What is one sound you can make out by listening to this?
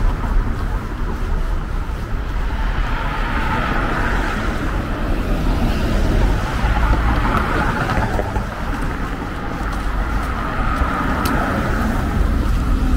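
Cars drive past outdoors.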